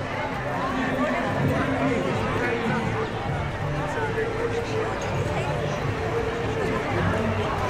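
A crowd of people chatters around outdoors.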